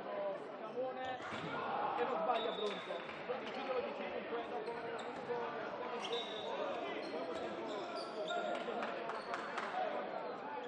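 A ball thuds as it bounces on the floor.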